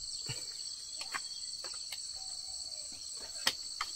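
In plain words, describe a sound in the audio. A panel of bamboo slats rattles and clatters as it is set in place.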